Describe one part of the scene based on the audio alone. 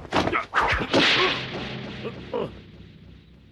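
A woman screams and cries out in fright close by.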